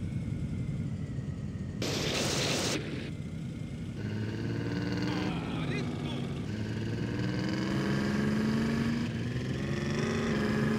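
Tyres crunch over a dirt track.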